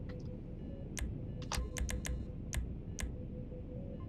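Short electronic clicks sound as a menu selection moves.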